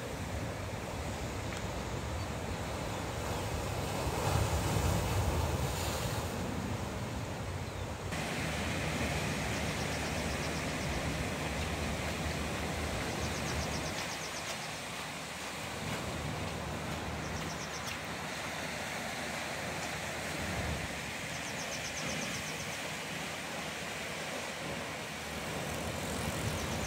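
Waves crash and wash over rocks nearby.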